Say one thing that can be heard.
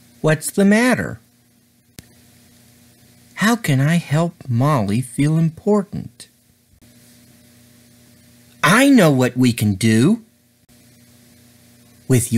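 A man speaks with animation, close to the microphone.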